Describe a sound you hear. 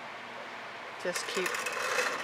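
A board scrapes as it is tilted.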